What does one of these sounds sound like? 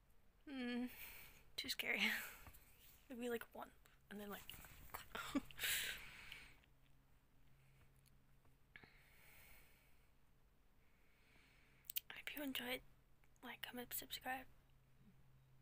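A young woman talks close to the microphone, casually and with pauses.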